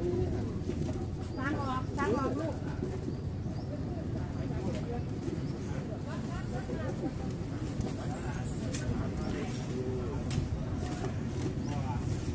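Young women talk quietly nearby outdoors.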